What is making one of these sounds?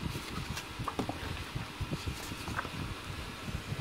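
A book page is turned with a papery rustle.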